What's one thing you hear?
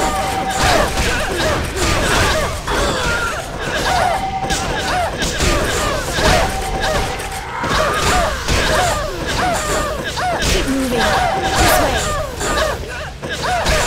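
Magic spells crackle and burst in a busy fight.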